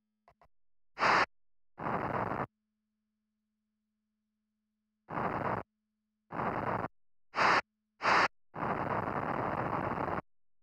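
A rocket thruster hisses in short bursts.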